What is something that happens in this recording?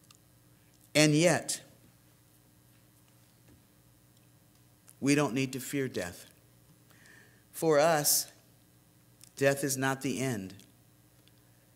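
An elderly man speaks slowly and solemnly into a microphone, with long pauses, in a room with light echo.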